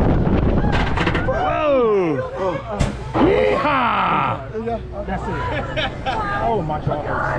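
A middle-aged man laughs.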